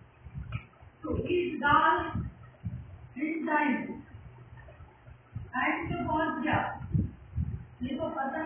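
An elderly woman speaks calmly, as if teaching, close by.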